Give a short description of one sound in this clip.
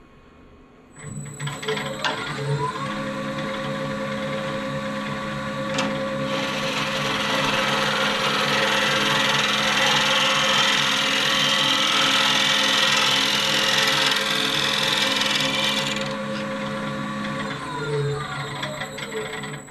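A lathe motor starts up and hums steadily.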